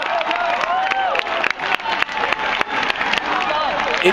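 A crowd claps their hands.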